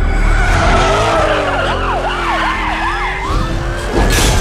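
Car tyres screech as a car skids sideways.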